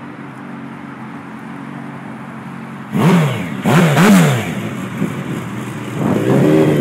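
A motorcycle engine idles with a low steady rumble.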